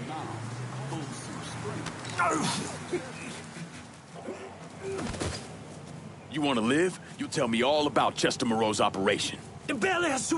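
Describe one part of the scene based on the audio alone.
Blows thud in a scuffle.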